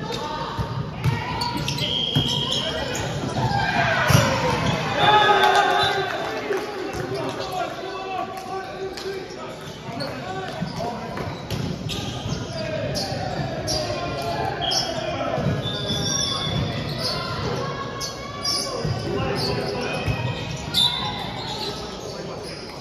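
Players call out and chatter in a large echoing hall.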